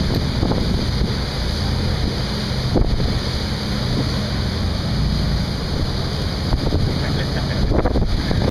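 A boat's wake churns and rushes loudly.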